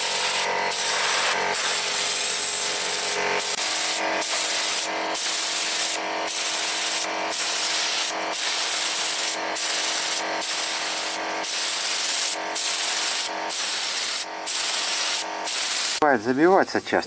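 A spray gun hisses loudly in bursts with short pauses.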